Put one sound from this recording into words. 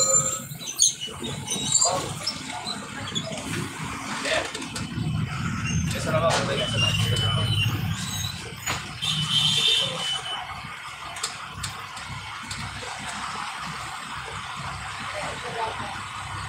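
A bus engine rumbles close ahead in slow city traffic.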